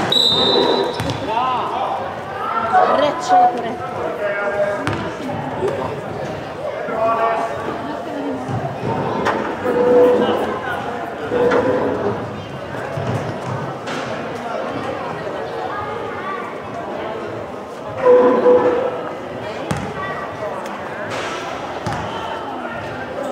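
Sneakers squeak on a hall floor.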